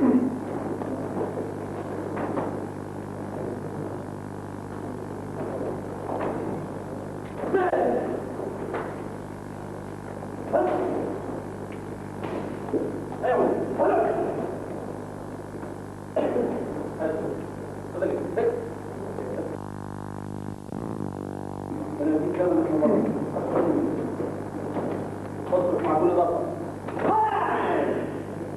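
Men shout sharply in a large echoing hall.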